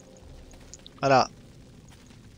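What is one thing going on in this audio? A young man says a few words into a microphone.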